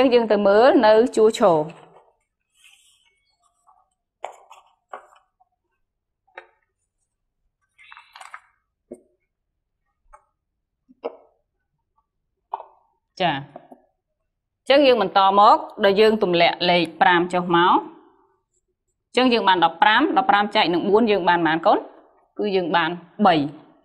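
A young woman speaks clearly and with animation into a microphone.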